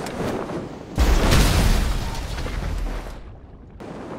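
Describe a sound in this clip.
A car splashes heavily into water.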